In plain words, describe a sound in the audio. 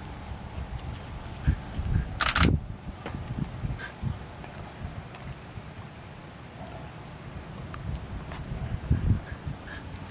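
A puppy sniffs and snuffles at the ground.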